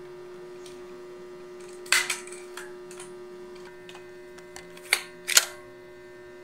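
A plastic toy blaster clicks as it is cocked.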